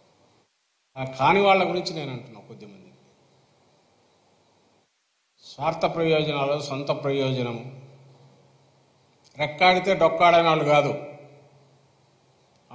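A middle-aged man speaks firmly into a microphone in short bursts, with pauses between them.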